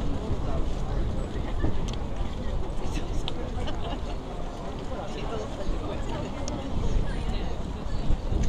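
A crowd of people chatter and murmur outdoors nearby.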